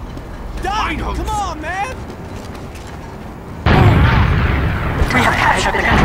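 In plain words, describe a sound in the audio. Rockets explode nearby with loud booms.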